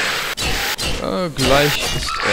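A ghostly skeleton lets out a wavering, eerie moan.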